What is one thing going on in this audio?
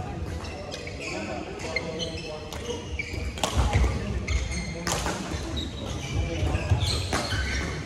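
Shuttlecocks are struck with rackets, with sharp pops echoing through a large hall.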